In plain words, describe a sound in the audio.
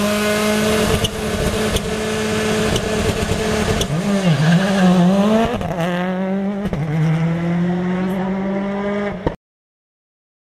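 A rally car engine roars loudly as the car speeds past.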